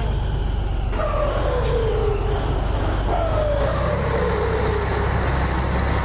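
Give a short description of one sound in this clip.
A truck engine's pitch drops twice as it shifts gears.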